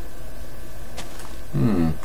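A soft block crunches as it breaks apart.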